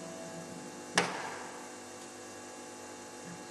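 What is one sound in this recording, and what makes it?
An electric guitar is strummed loudly once through an amplifier, then rings out.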